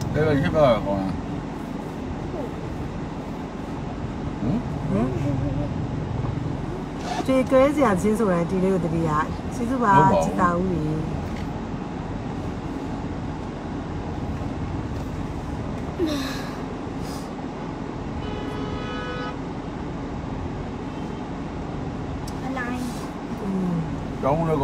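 A young woman speaks close by, casually.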